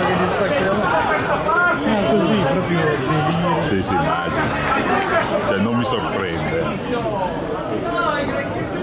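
A crowd sings and chants in the stands of an open stadium.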